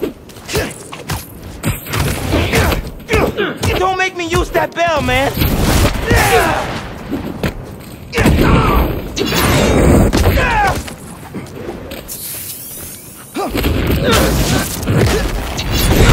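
Heavy blows thud and crash during a fight.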